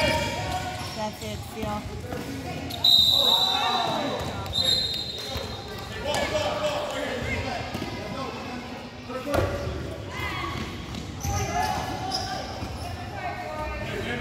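A basketball thumps on a wooden floor.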